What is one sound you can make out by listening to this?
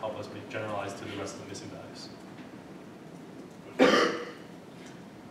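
A man lectures calmly in a room, heard at a distance.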